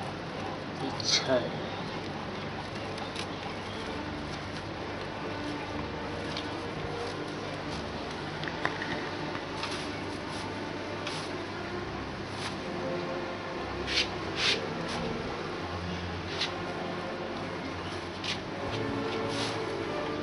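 Rope taps and snaps against a wooden frame.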